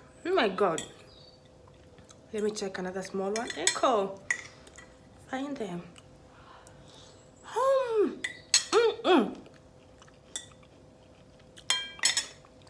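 A fork scrapes against a plate.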